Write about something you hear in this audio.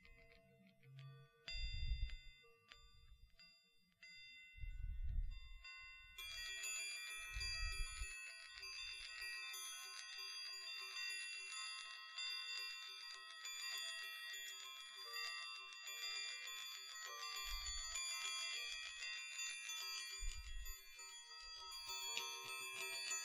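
Metal balls clink and chime close to a microphone.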